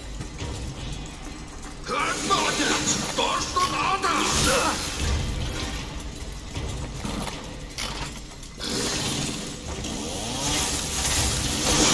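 A monster snarls and groans close by.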